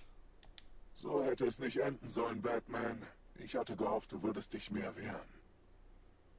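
A man speaks in a low, menacing voice, close up.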